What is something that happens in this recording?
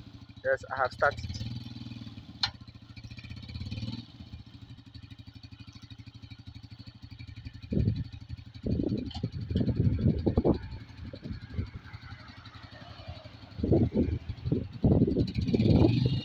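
A motorcycle engine idles nearby with a steady, rapid putter.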